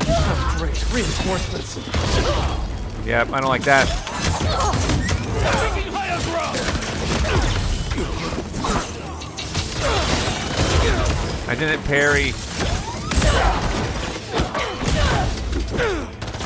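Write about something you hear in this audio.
Punches and kicks thud and smack in a fast brawl.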